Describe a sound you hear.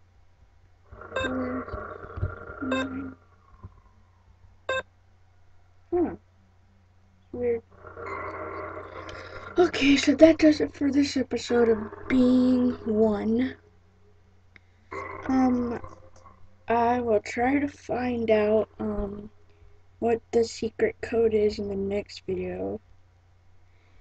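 A young boy speaks with animation close to a microphone.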